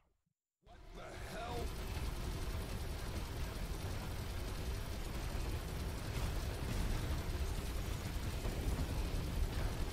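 Heavy guns fire rapidly.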